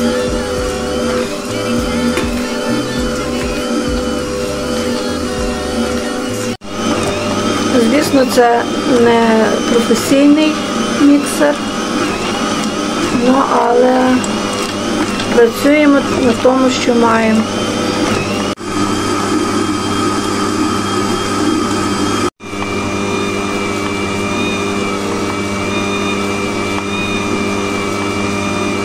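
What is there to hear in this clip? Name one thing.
A stand mixer whirs steadily as its beater churns thick dough.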